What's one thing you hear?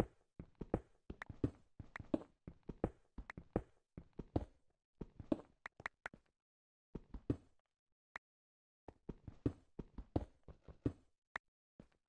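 A pickaxe chips at stone in quick, repeated knocks.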